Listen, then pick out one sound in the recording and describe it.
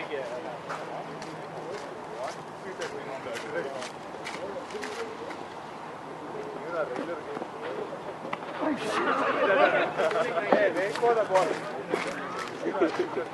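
Several men talk and call out across an open field at a distance.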